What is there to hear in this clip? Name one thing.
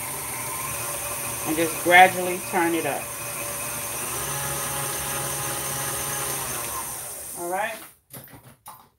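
An electric stand mixer whirs steadily, then winds down and stops.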